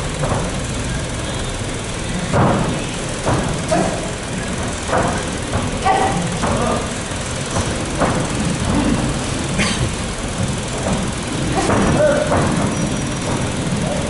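Bodies thump together as two fighters grapple in a clinch.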